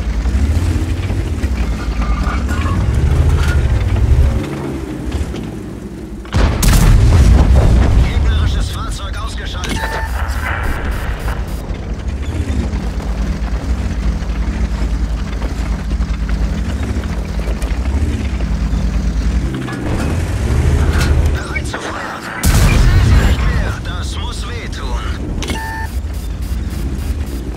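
A tank engine rumbles and whines steadily.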